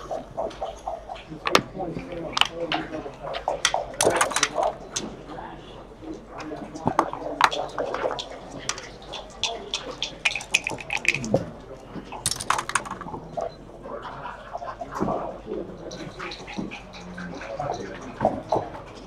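Dice rattle and tumble onto a board.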